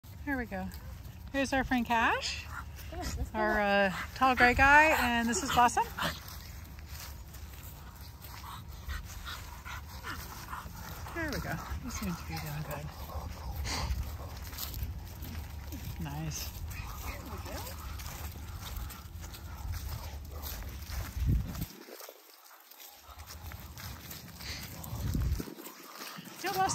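Footsteps crunch on dry grass and leaves.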